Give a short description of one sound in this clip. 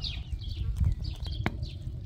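Liquid pours in a stream into a full pot.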